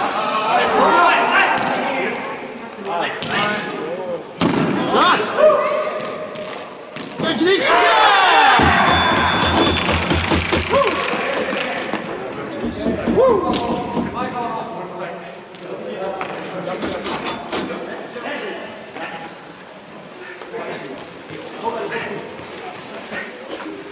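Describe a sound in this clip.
Children shout and call out across a large echoing rink.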